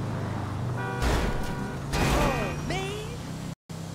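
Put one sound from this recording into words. Tyres squeal briefly as the car swerves past another car.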